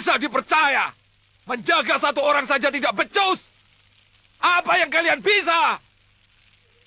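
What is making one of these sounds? Several men shout together loudly.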